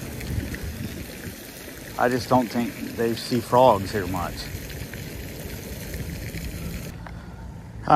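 A fountain splashes steadily in the distance.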